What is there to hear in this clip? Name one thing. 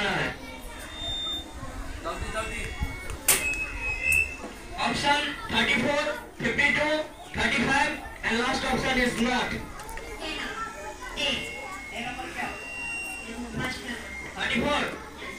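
Children chatter in the background.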